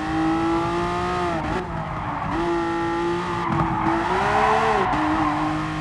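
A racing car engine roars at high revs, dipping and rising as gears change.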